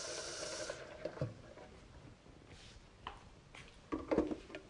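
Dishes clink and knock on a counter.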